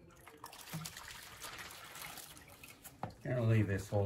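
Oil trickles and splashes into a drain pan.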